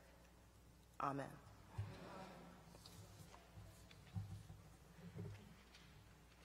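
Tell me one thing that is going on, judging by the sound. A woman speaks quietly through a microphone.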